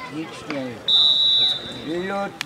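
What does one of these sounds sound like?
A referee's whistle blows once, short and sharp.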